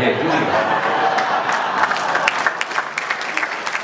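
Two men laugh heartily.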